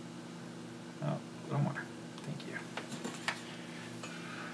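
A small metal tool taps and clicks against electronic parts.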